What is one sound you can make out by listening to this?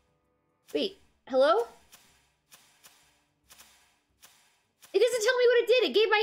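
A young woman exclaims and speaks with animation into a close microphone.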